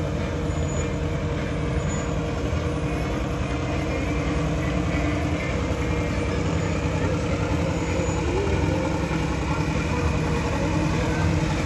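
A tractor engine rumbles as it slowly approaches.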